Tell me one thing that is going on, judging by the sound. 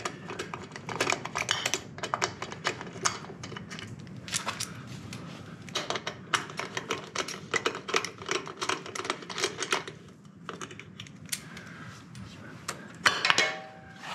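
Metal tools click and clink against an engine.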